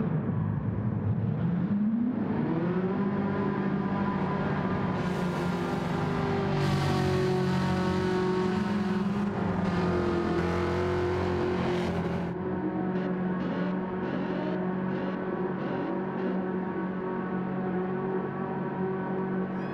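A racing car engine roars loudly, rising in pitch as it revs up through the gears.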